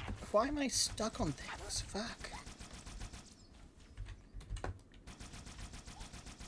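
A needle gun fires rapid, crackling shots.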